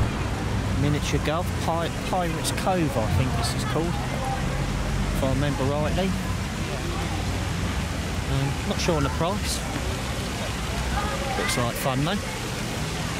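Seagulls cry overhead in repeated bursts.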